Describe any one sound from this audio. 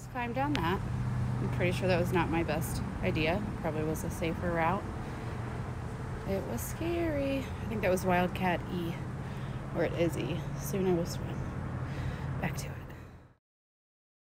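A young woman talks calmly, close to a microphone.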